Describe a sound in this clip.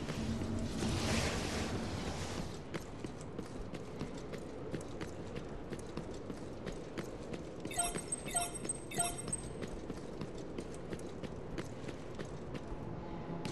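Footsteps of a game character patter on stone.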